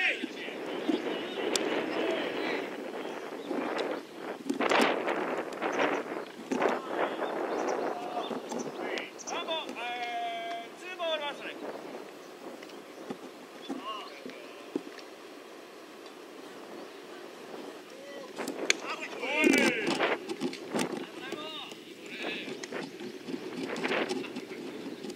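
Young men shout encouragement across an open field.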